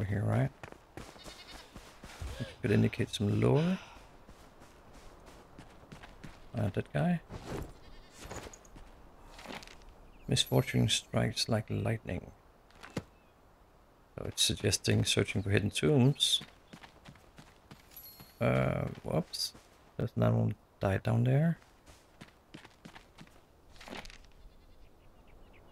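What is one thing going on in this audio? Footsteps run over grass and soft dirt.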